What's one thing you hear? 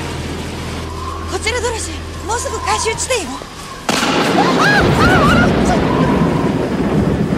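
A woman speaks urgently and close by.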